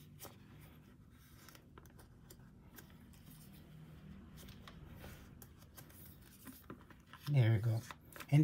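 Stiff plastic binder pages rustle and flap as they turn.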